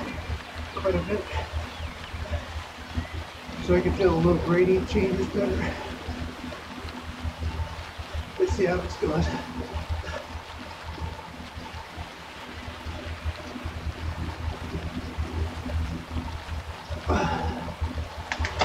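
A young woman speaks casually close to a microphone.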